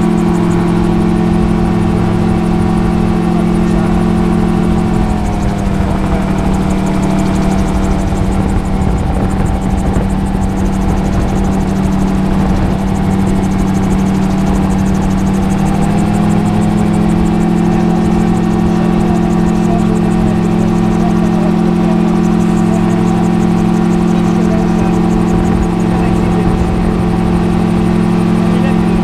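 Wind rushes past an open cockpit.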